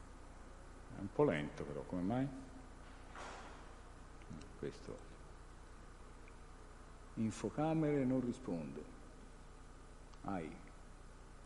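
A man speaks through a microphone in short, halting phrases with pauses.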